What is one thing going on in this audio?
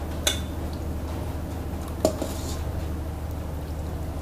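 Broth pours and splashes into a glass bowl.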